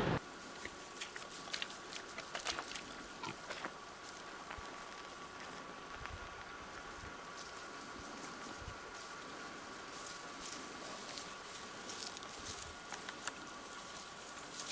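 Pigs snuffle and root in the earth.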